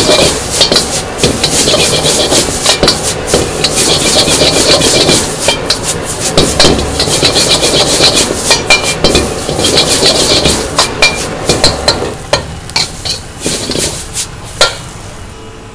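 A metal ladle scrapes and clanks against a wok.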